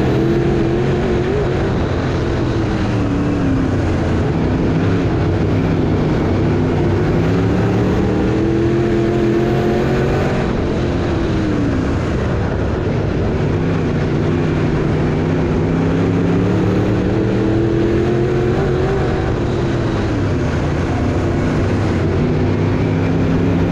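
A race car engine roars loudly up close, revving up and down through the gears.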